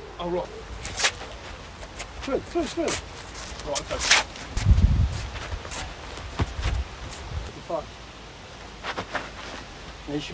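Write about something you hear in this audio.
Hands slap and strike against arms and body.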